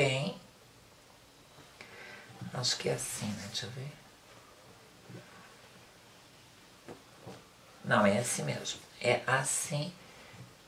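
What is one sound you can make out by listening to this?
Fabric rustles softly as it is smoothed and folded.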